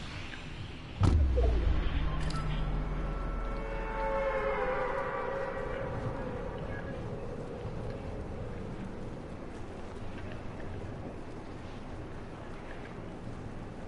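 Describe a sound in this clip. Wind rushes steadily past during a fall through the air.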